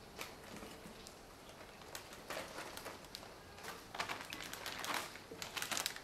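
Lettuce leaves rustle as they tumble into a bowl.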